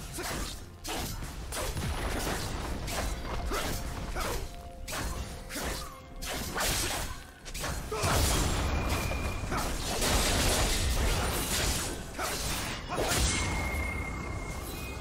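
Game spell blasts and weapon hits crack and thump rapidly in a fight.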